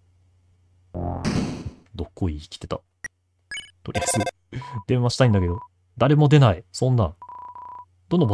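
Short electronic blips chirp quickly, one after another.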